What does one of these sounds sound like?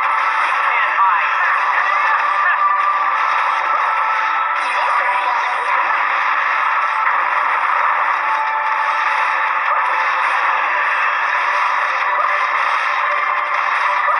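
Game battle effects clash and whoosh in quick succession.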